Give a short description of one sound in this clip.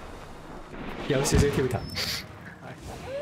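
A dog-like creature howls loudly.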